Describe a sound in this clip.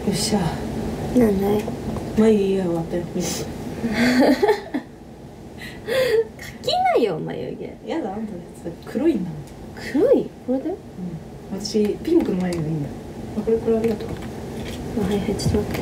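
A young woman speaks casually close to a microphone.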